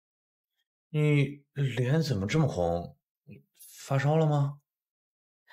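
A man speaks with surprise, close by.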